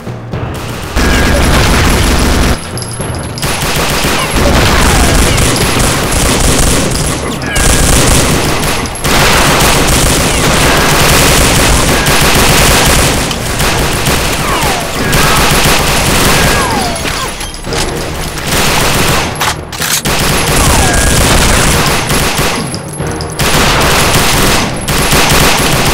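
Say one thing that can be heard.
Rapid gunfire rattles loudly and without letup.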